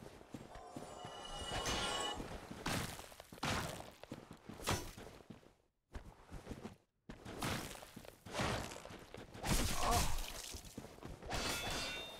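Sword strikes clang.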